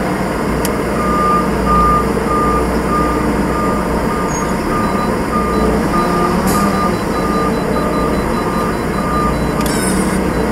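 A reversing alarm beeps in a fast, even rhythm.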